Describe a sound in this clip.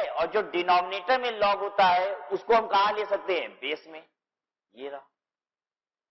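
A man explains with animation, heard close through a microphone.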